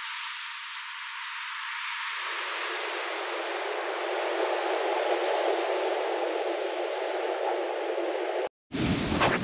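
Ocean surf washes onto a sandy beach in the distance.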